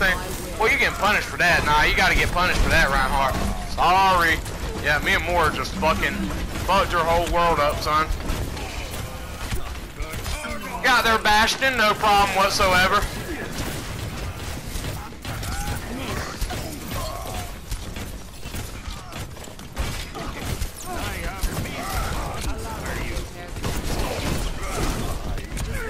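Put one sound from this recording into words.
A heavy gun fires rapid blasts.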